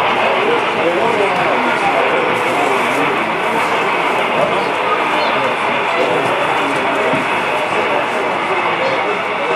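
Model trains rumble and clatter along the tracks.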